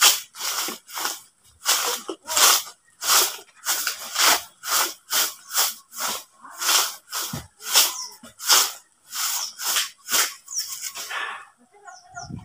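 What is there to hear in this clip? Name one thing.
A broom of sticks sweeps the ground in quick, rhythmic strokes.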